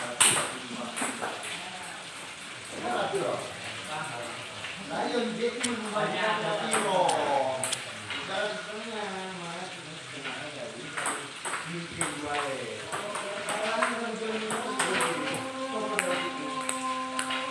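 A ping pong ball clicks sharply back and forth on paddles and a table.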